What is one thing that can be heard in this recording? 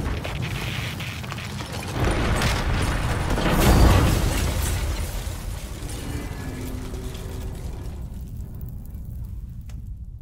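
Rock debris clatters and falls.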